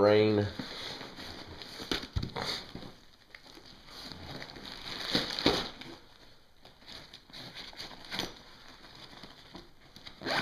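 Gear rustles and clicks as it is handled in a backpack pocket.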